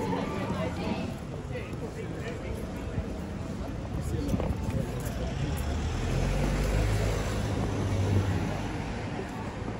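A bus engine rumbles as it approaches.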